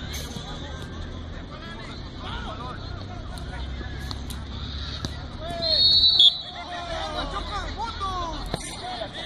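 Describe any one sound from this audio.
Young people chatter and call out at a distance, outdoors.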